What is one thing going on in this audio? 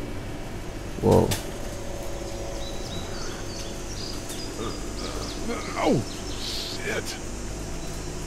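A man groans and mutters in pain.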